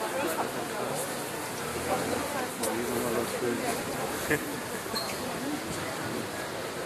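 A crowd of people chatters outdoors on a street.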